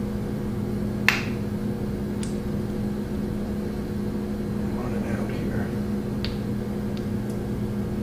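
A caulking gun clicks as its trigger is squeezed.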